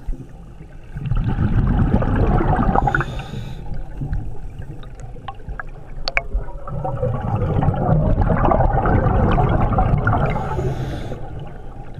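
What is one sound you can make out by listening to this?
Scuba breathing bubbles gurgle and rumble underwater in loud bursts.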